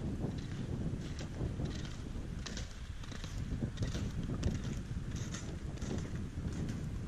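Ski poles tap and crunch into the snow.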